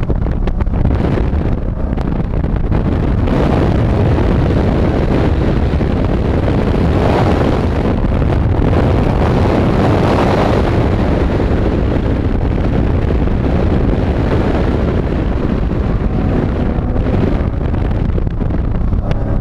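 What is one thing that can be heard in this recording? A car engine roars loudly, revving up and down.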